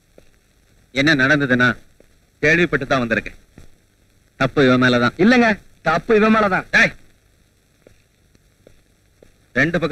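A man speaks loudly and with animation nearby.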